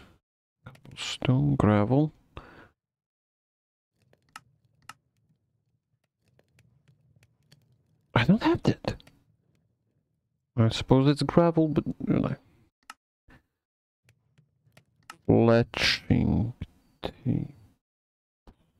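A man talks calmly into a microphone in short bursts.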